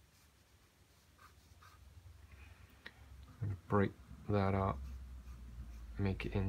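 A brush softly strokes wet paper.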